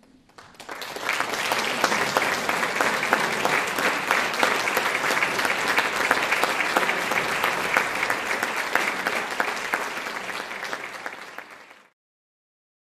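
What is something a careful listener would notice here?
An audience applauds loudly in a hall.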